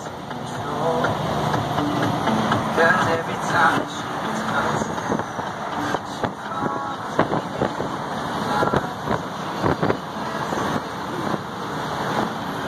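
Highway traffic rushes past, heard from inside a moving vehicle.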